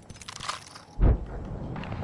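A gunshot bangs sharply in a video game.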